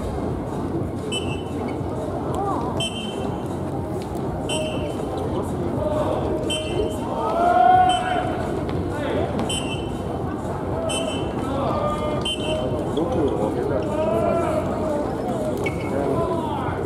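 Sneakers squeak sharply on a court floor.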